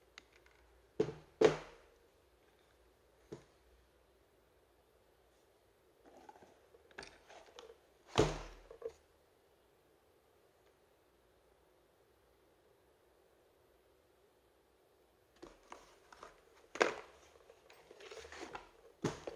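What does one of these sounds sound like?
A plastic battery pack knocks and clatters against a cardboard box.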